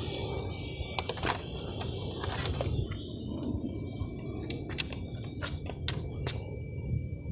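Plastic clicks and snaps sharply as a toy car's body is clipped on.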